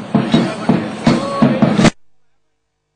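A woman shouts loudly among a crowd outdoors.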